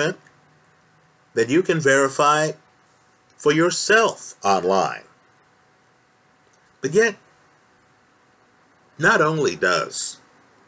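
A man speaks close to the microphone in short, calm bursts with pauses.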